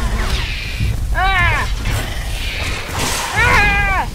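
Explosions boom loudly.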